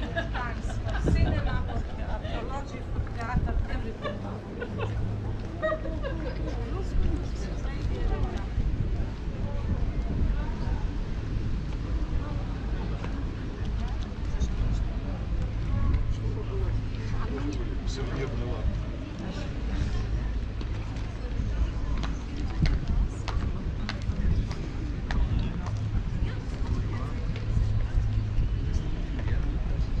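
Footsteps tap on stone paving nearby.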